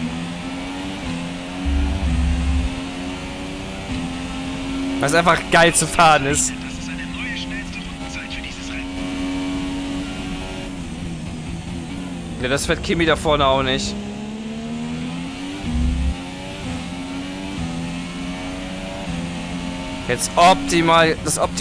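A racing car engine roars steadily, rising in pitch through the gears and dropping when slowing for corners.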